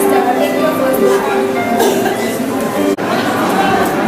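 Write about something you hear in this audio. Many children chatter in a busy, echoing room.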